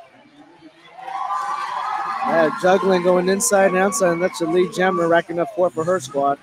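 A crowd cheers and claps in a large hall.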